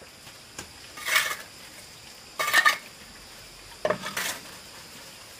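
A trowel scrapes and smooths wet cement.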